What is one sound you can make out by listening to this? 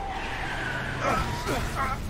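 A car engine idles nearby.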